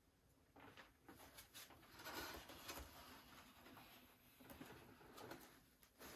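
A cloth rag rubs and wipes across balsa wood.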